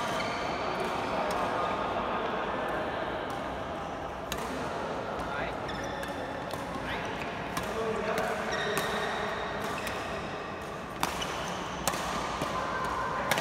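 Badminton rackets strike shuttlecocks with sharp pops in a large echoing hall.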